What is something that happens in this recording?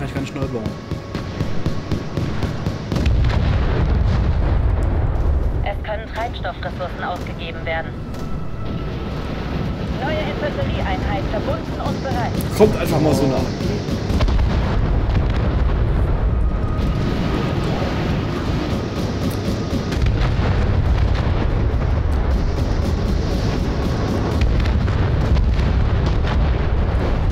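Explosions rumble and boom in a battle.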